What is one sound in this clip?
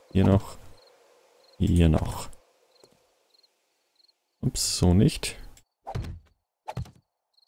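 Heavy blocks thud into place one after another.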